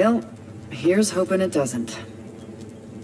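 A woman speaks calmly and wryly, close by.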